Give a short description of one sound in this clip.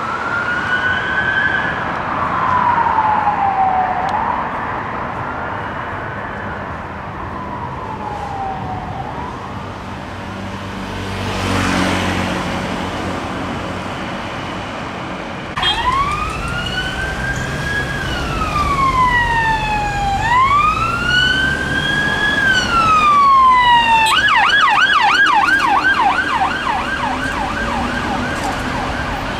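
Traffic rumbles past on a street.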